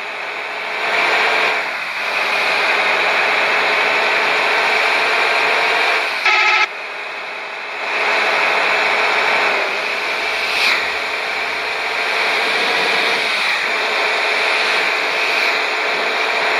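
A coach bus engine drones as the bus accelerates on a highway.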